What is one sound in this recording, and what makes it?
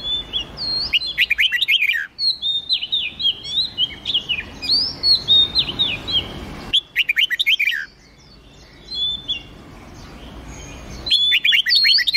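Songbirds sing quick, clear whistling phrases close by.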